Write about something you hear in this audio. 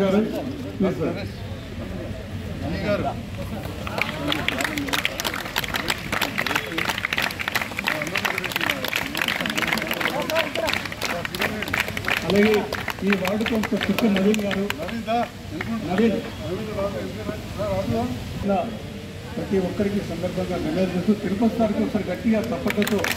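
Several men talk and chatter nearby.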